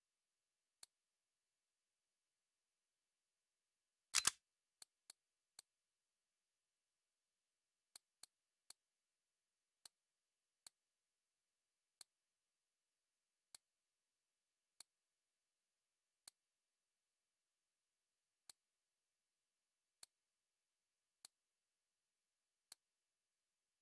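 Soft menu clicks tick one at a time as items are browsed.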